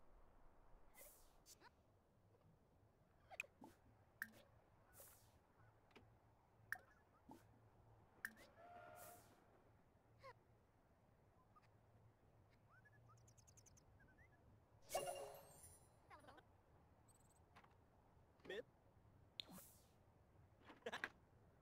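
A computer game's interface makes short, sharp clicks now and then.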